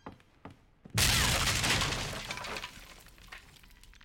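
A wooden shelf crashes down loudly and debris clatters.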